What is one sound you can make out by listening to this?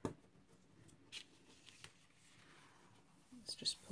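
A sheet of paper rustles as it is lifted and tilted.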